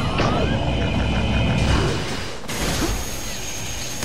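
A fiery beam blasts with a roaring rush.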